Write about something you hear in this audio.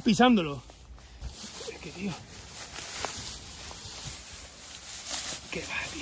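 Dry grass rustles and crackles as hands pull at it.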